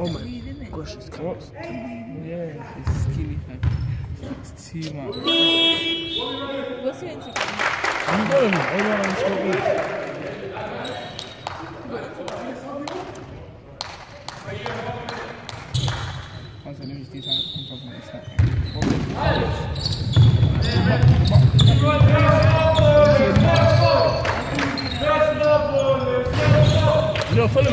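Young men shout and call to each other across an echoing hall.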